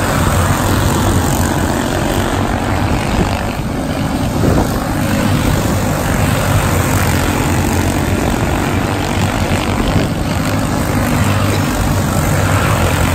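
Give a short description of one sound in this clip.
Small go-kart engines buzz loudly as karts race around a track outdoors.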